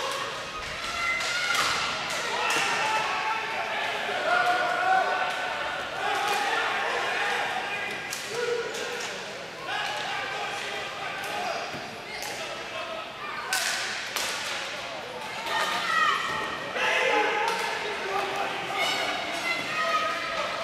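Hockey sticks clack and slap a ball on the floor.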